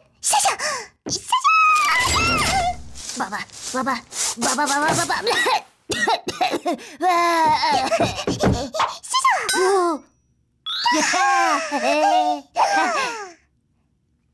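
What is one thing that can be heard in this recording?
A cartoon character chatters excitedly in a high, squeaky voice.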